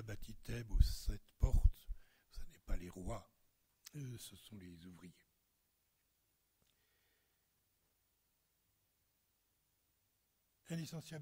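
An elderly man speaks calmly into a microphone, pausing between phrases.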